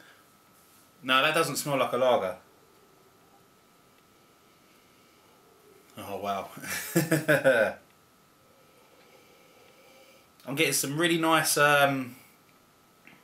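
A middle-aged man speaks close by in short, animated bursts.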